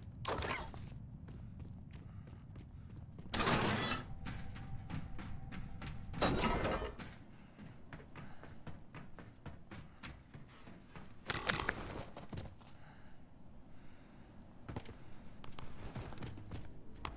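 Quick footsteps thud on hard floors and clang on metal stairs.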